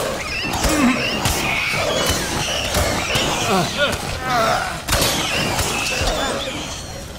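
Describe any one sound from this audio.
Heavy blows thud in quick succession.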